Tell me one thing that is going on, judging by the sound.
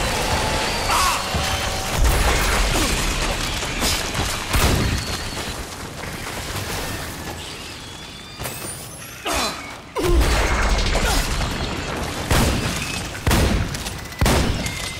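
Gunshots blast in bursts.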